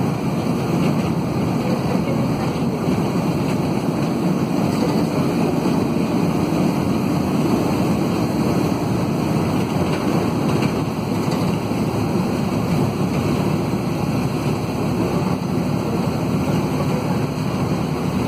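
A diesel minibus engine drones from inside the cabin as the bus drives along a road.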